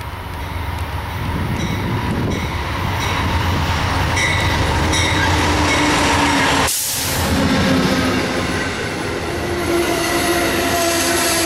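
Train wheels clatter and squeal over the rails as carriages pass close by.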